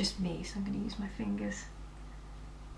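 A young woman speaks calmly and close to the microphone.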